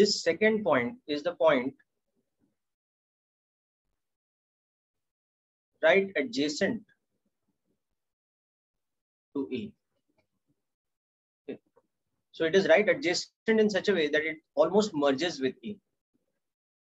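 A young man speaks calmly into a microphone, in short bursts with pauses.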